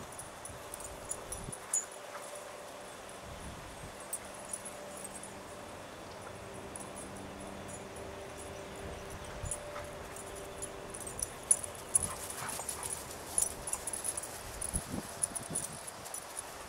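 Dog paws thud and rustle on grass while the dogs play.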